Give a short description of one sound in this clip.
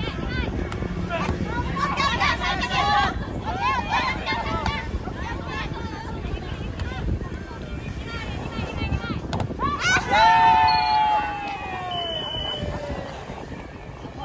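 Young people shout and call out to each other outdoors.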